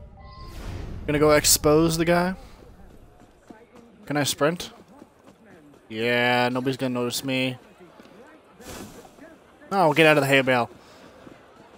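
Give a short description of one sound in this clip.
A young man talks loudly and animatedly into a microphone.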